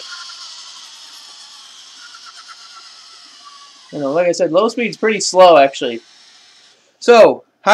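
A toy car's electric motor whirs with a high whine.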